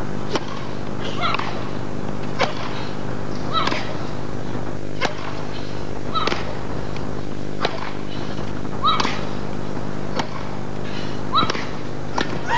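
Tennis balls are struck with rackets in a steady rally.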